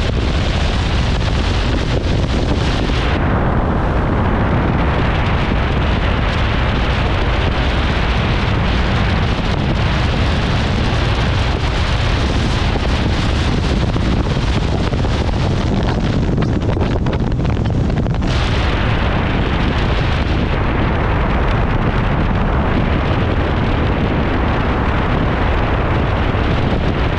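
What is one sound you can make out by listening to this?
A motorbike engine hums steadily while riding along a road.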